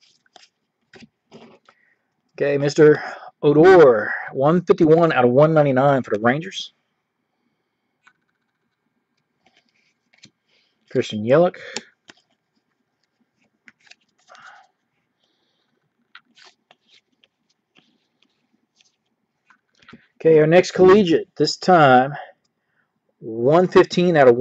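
Trading cards rustle and slide against each other as hands shuffle through them.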